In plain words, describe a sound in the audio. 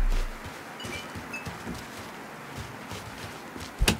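Footsteps run over wet ground.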